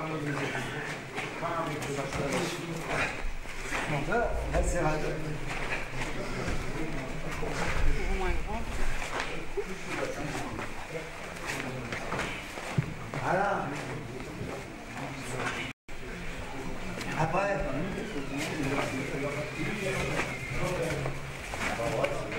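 Several people talk and call out in a large echoing hall.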